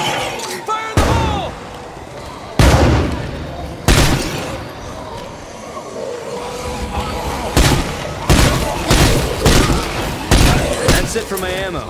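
Pistol shots ring out one after another.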